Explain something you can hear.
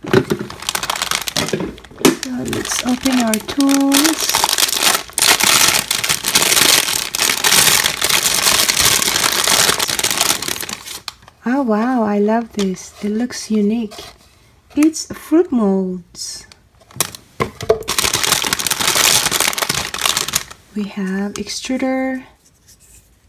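A plastic bag crinkles and rustles loudly as it is handled.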